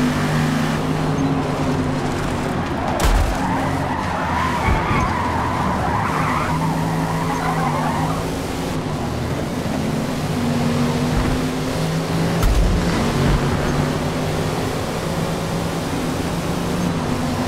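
A car engine roars and shifts gears throughout.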